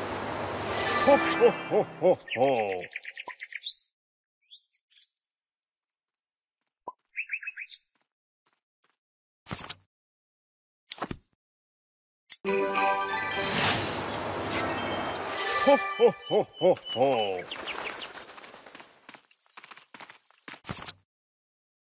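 A cheerful game jingle plays with bright chimes.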